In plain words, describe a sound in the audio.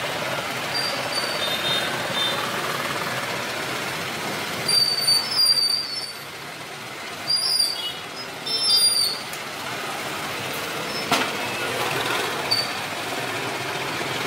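Motorbikes ride past on a street nearby.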